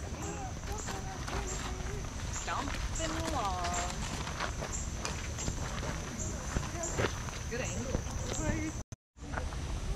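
Adults and children chatter nearby outdoors.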